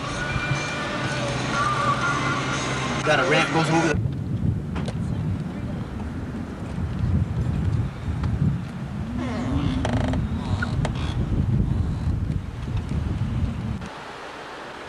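A car engine rumbles steadily while driving.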